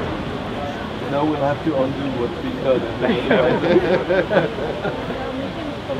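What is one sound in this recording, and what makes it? Several men talk nearby outdoors.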